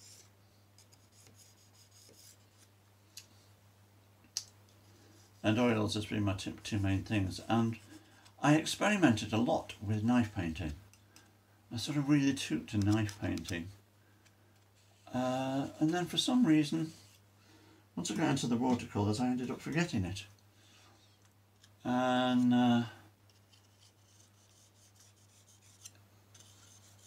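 A tool scratches lightly across a hard surface.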